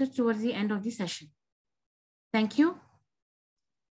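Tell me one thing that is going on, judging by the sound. A young woman speaks expressively over an online call.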